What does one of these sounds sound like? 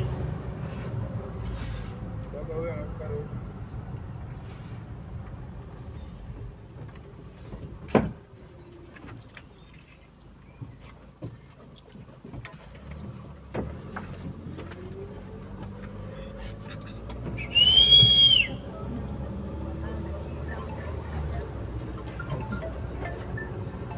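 A vehicle engine hums low and steady from inside the car.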